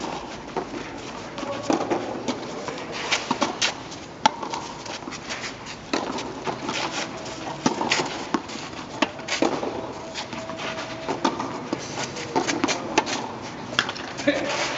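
Tennis shoes scuff and slide on a clay court.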